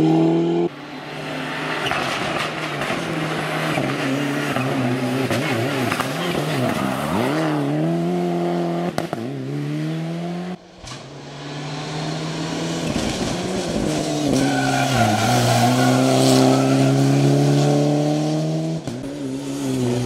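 A rally car engine roars and revs hard, rising and dropping in pitch as it shifts gears.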